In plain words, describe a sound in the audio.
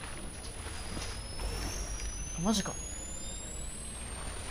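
A device charges up with a rising electric whine.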